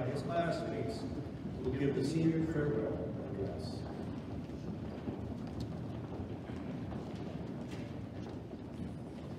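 A crowd murmurs softly in a large hall.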